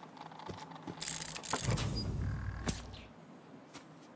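A wooden chest creaks open with a clatter.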